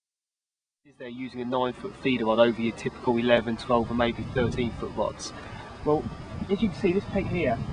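A young man talks calmly and close by.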